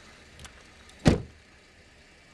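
A car door slams shut with a heavy thud.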